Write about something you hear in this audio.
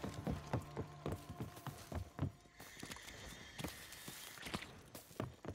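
Heavy footsteps thud quickly and steadily.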